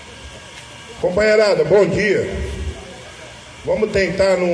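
A man speaks loudly through a microphone over a loudspeaker, outdoors.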